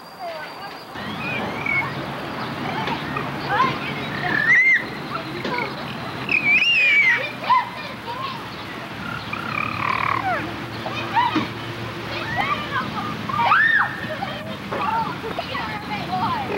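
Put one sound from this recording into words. A baby babbles and squeals happily close by.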